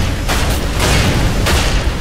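A loud explosion bursts and crackles.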